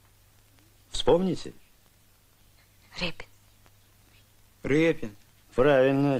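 A boy answers in a young voice.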